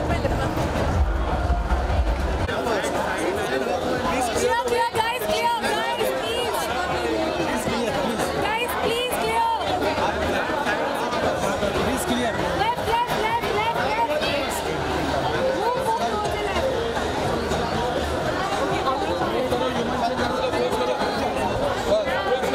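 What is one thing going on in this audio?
A large crowd chatters and calls out loudly all around, close by.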